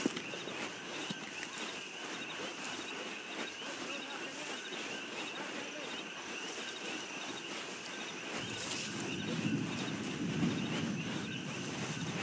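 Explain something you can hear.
Footsteps crunch softly on sand and gravel.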